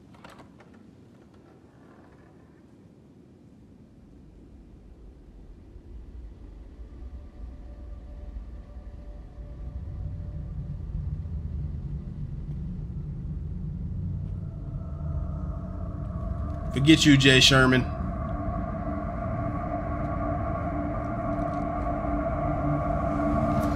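A young man talks quietly into a headset microphone.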